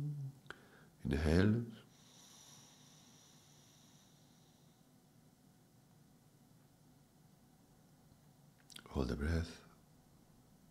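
A man breathes in deeply and slowly.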